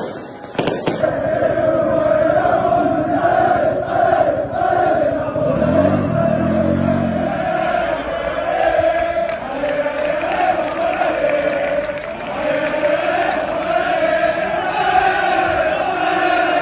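A large crowd of men chants in unison outdoors.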